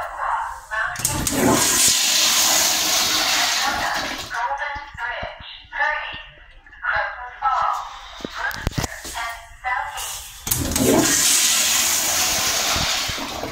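A toilet flushes with a loud rush of water.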